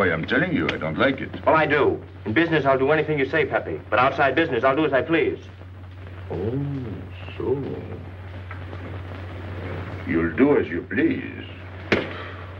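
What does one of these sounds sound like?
A man speaks tensely at close range.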